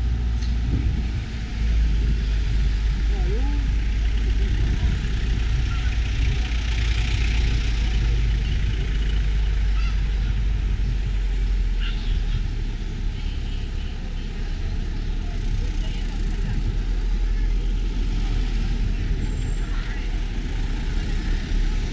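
A crowd of men and women chatters along the roadside.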